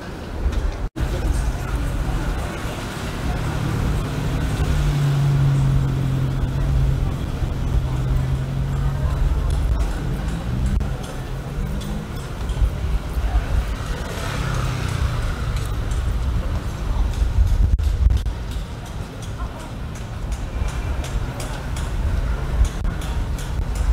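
A low outdoor street noise rumbles steadily.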